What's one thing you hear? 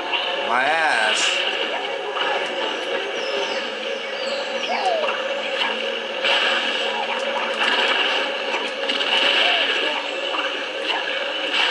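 Upbeat video game music plays steadily.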